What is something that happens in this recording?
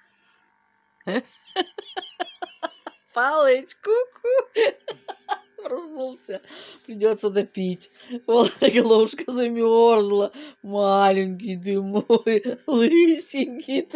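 A child talks and squeals with animation close by.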